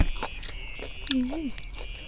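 Fresh leafy greens snap and crunch.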